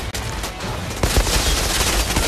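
A gun fires rapid loud shots.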